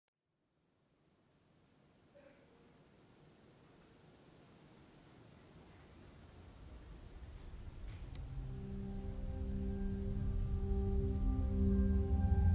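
A low electronic drone slowly swells louder.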